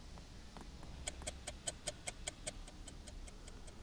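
A wall clock ticks steadily.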